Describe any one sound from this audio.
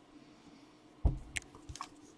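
A marker cap pops off with a click.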